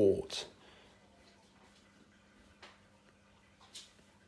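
Liquid pours and trickles into a container.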